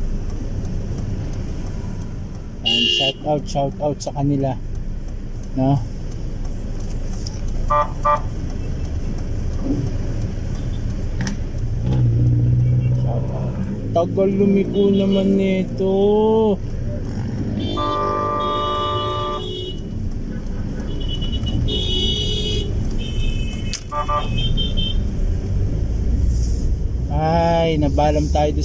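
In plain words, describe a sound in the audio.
A car engine hums steadily inside the cabin.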